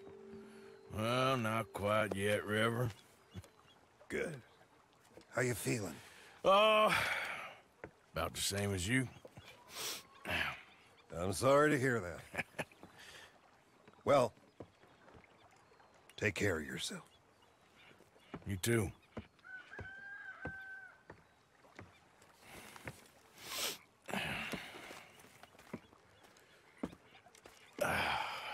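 A man speaks calmly in a low, gravelly voice.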